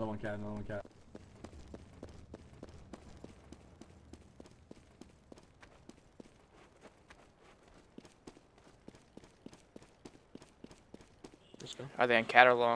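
Quick footsteps patter over hard ground.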